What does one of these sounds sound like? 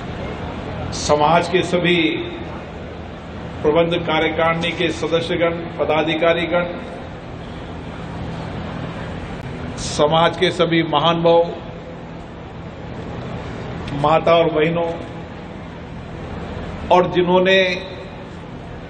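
A middle-aged man speaks forcefully into a microphone in short bursts with pauses, his voice echoing through loudspeakers.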